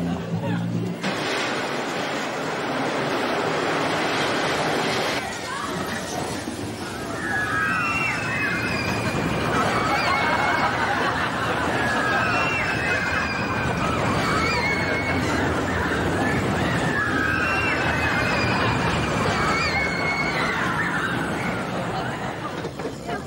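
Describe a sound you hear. A roller coaster rattles and roars along its track.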